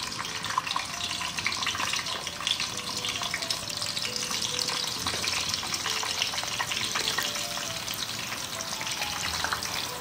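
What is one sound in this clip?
Hot oil sizzles and crackles steadily.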